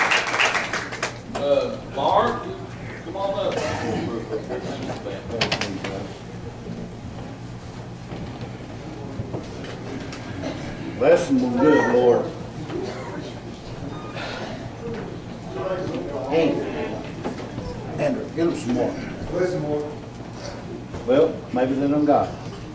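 Men and women talk quietly among themselves in a room.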